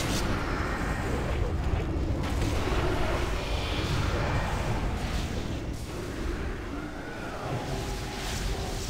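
Spell effects crackle and boom in a game battle.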